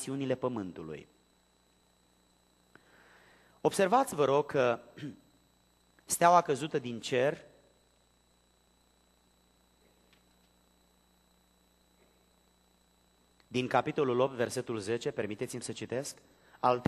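A middle-aged man speaks into a microphone in a measured, formal voice, with pauses between phrases.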